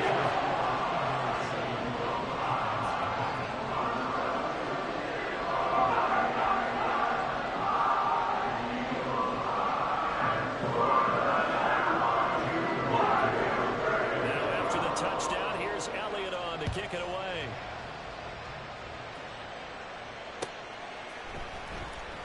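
A large crowd roars steadily in a stadium, then fades.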